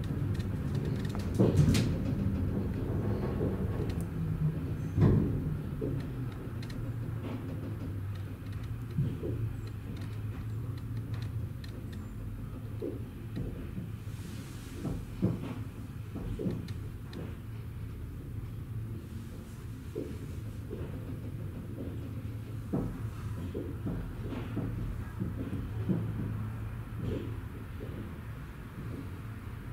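A suspension railway car hums as it runs along its overhead track.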